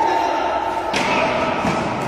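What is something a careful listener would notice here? A ball is kicked with a sharp thud in an echoing indoor hall.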